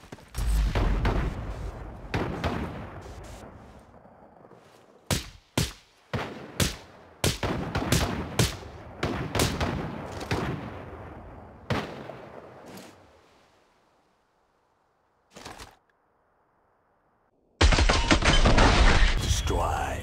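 Gunshots fire in sharp bursts and echo away.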